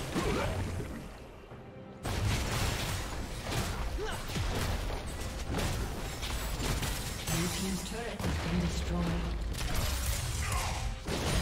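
Magic blasts and sword strikes clash in a fast video game fight.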